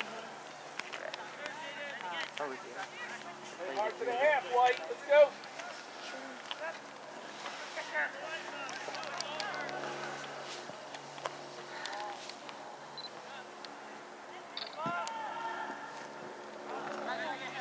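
Young men shout to each other from across an open field.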